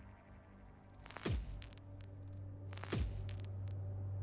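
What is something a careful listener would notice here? Sweeping whooshes sound as the game menu changes.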